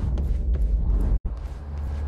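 Footsteps tread across a hard floor.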